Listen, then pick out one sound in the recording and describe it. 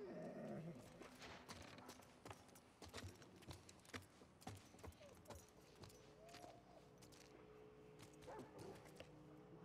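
Footsteps creep softly across a wooden floor.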